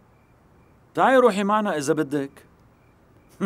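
A young woman answers tensely and close by.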